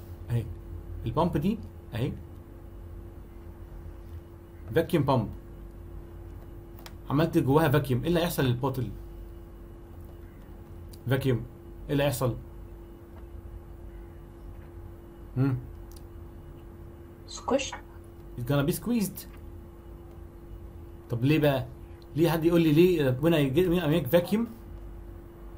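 A young man speaks calmly in short bursts, heard through an online call.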